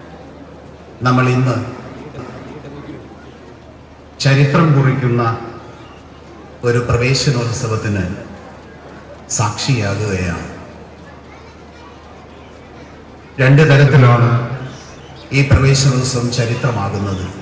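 A man speaks emphatically into a microphone over a loudspeaker, in bursts with pauses between them.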